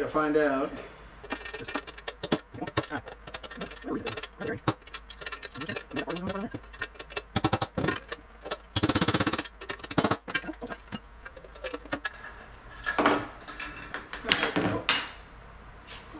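Metal parts clink and rattle as a wheel is handled.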